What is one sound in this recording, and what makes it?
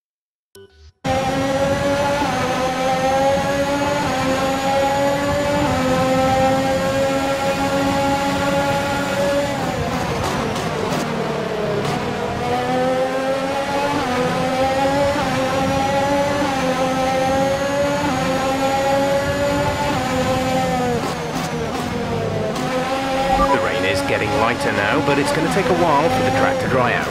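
Rain spray hisses under a racing car's tyres.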